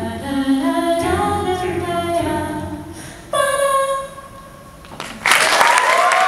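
A group of young women sing together in harmony through microphones in a large hall.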